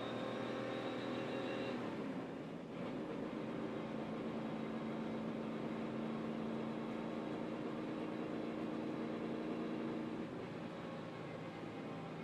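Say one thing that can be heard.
A race car engine drones loudly and steadily up close.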